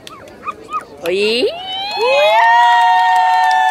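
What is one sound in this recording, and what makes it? Young women cheer and whoop with rising voices.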